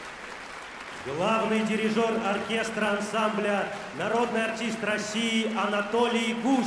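An elderly man speaks loudly and with feeling over a loudspeaker in a large hall.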